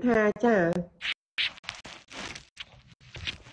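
A young woman talks softly close to a microphone.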